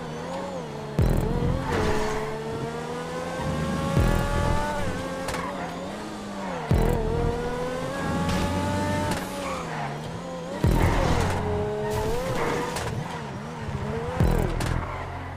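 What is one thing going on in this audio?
A car engine backfires with loud pops on gear changes.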